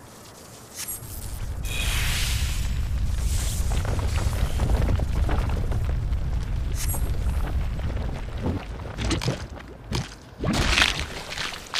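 A huge monster rumbles and growls deeply.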